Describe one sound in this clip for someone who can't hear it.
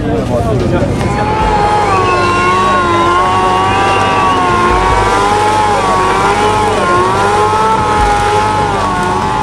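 A motorcycle engine roars at high revs, wavering up and down.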